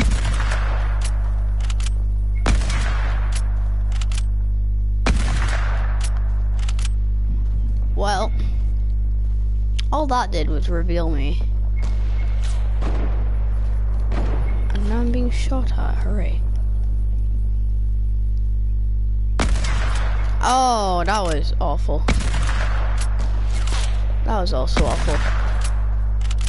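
Gunshots ring out in short, sharp bursts.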